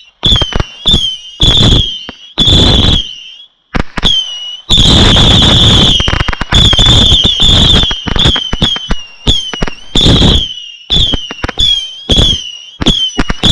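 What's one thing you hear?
Fireworks give short shrill whistles after each burst.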